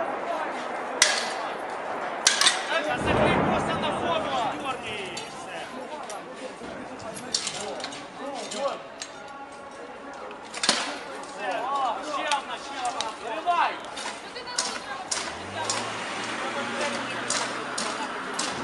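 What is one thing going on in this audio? Metal bangs and clanks as a man wrenches a sign from a wall.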